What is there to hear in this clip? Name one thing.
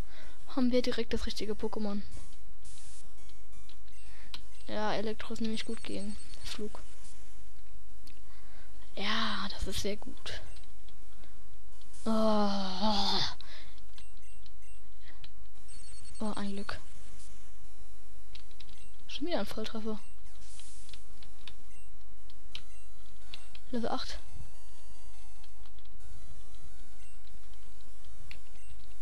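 Soft electronic game music plays throughout.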